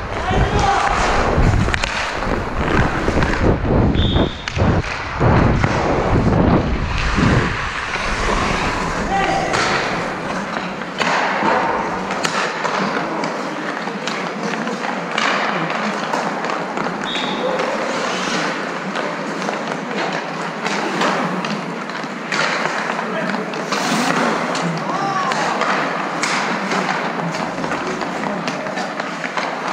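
Skate blades scrape and carve across ice.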